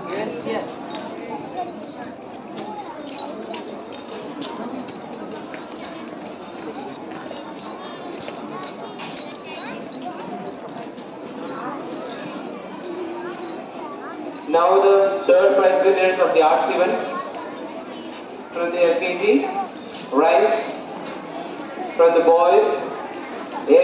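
Children chatter and murmur in the background of an echoing hall.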